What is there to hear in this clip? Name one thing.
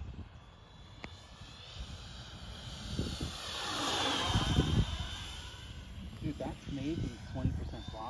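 A propeller plane drones overhead and roars past, its engine pitch dropping as it goes by.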